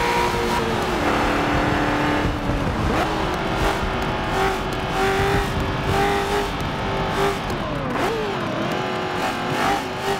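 A race car engine roars steadily, its pitch shifting as it changes speed.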